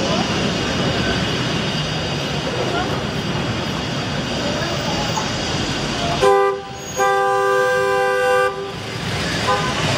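Busy street traffic rumbles steadily outdoors.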